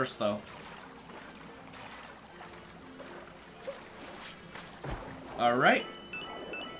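Water splashes softly as a small figure swims.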